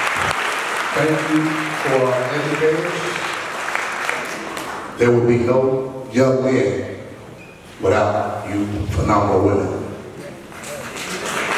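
A man speaks with animation into a microphone, amplified through loudspeakers in a large room.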